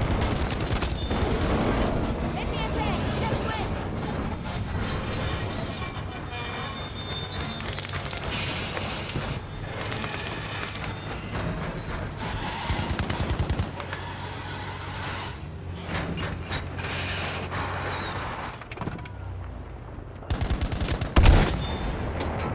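Gunfire and explosions crack and boom.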